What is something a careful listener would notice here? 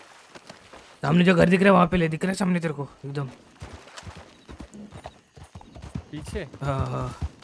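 A horse's hooves clop on dry ground.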